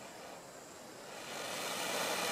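A man blows steadily on smouldering tinder.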